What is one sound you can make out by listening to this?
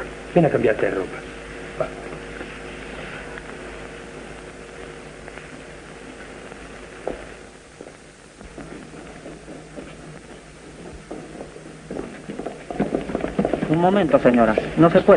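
A woman speaks with emotion, heard through an old, crackly soundtrack.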